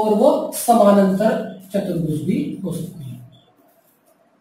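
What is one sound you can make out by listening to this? A man speaks calmly and clearly, as if teaching, close to a microphone.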